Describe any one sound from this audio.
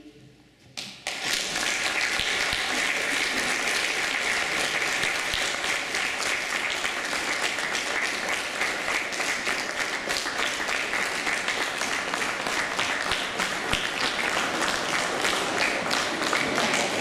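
Many plastic cups are tapped and clapped rhythmically on tables.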